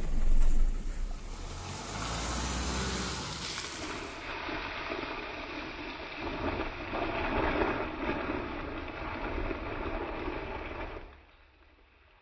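A car drives slowly over a rough dirt road, tyres crunching.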